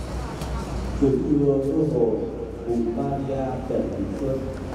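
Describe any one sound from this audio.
A man murmurs a prayer nearby.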